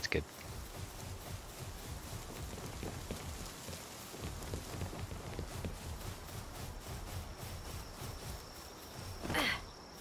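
Footsteps thud on grass and wooden planks.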